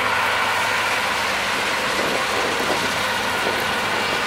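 A combine harvester hums and whirs nearby.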